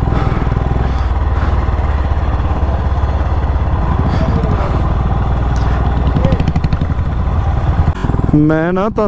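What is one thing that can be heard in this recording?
A motorcycle engine rumbles steadily close by as it rides along.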